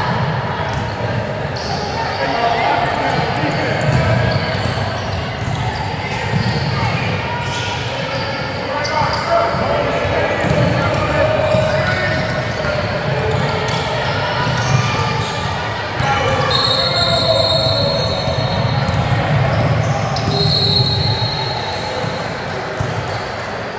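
A basketball bounces on a hard floor in a large echoing gym.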